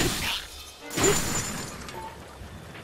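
A creature bursts in a puff of smoke.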